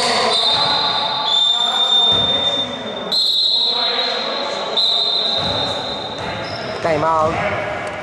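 Men call out to each other across an echoing hall.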